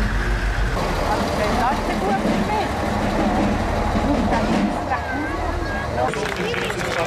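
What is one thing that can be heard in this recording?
A heavy truck engine rumbles past slowly.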